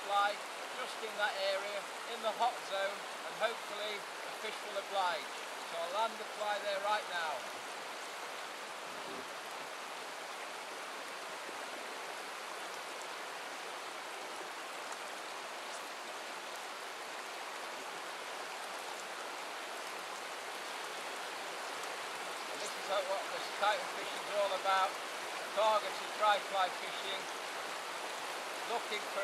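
A shallow river rushes and babbles steadily over rocks outdoors.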